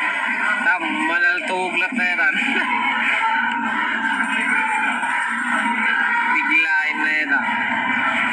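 A man speaks into a microphone, heard through loudspeakers in a large open hall.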